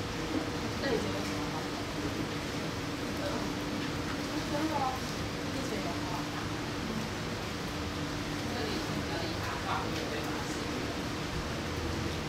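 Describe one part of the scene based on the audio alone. Teenage students murmur softly nearby in a quiet room.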